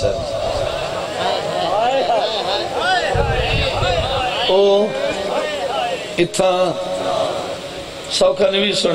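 An elderly man speaks passionately and loudly through a microphone and loudspeakers, his voice echoing.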